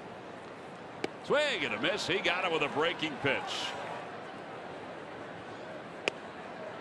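A ball smacks into a catcher's mitt with a sharp pop.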